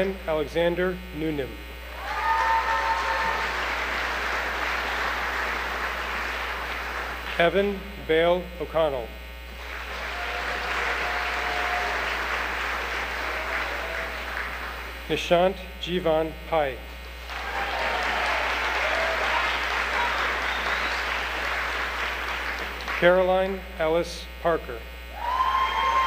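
A voice reads out names through a loudspeaker in a large echoing hall.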